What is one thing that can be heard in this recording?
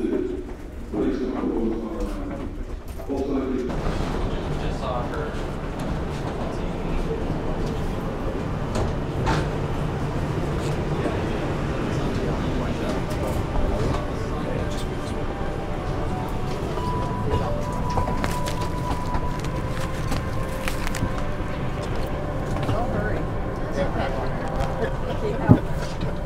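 Footsteps shuffle along a walkway.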